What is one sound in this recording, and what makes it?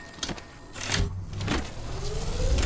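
A device whirs and hums as it charges up.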